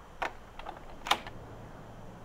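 A lock clicks as it is picked.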